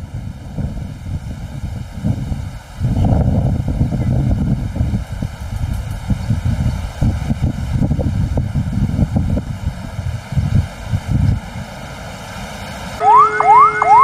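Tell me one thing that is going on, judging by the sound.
Jet engines roar loudly as an airliner comes in low to land.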